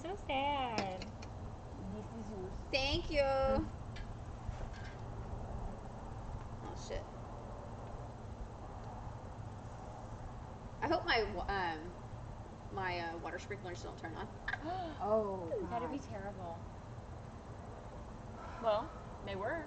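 Young women talk and laugh nearby in a casual way.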